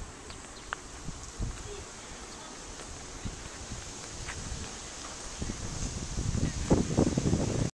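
Footsteps tread on a brick path.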